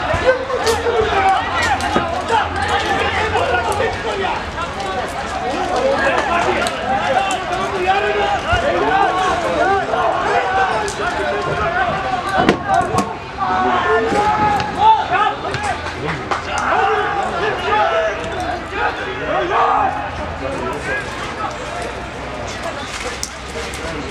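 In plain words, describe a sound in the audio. Men shout and call out across an open football pitch.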